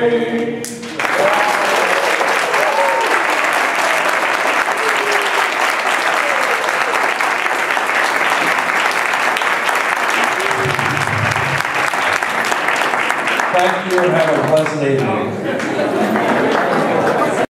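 A large crowd applauds in a hall.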